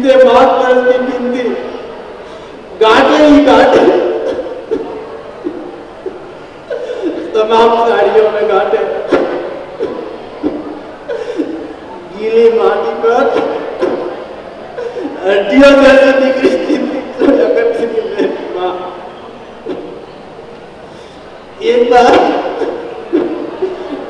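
A young man sings with feeling into a close microphone, in phrases with short pauses.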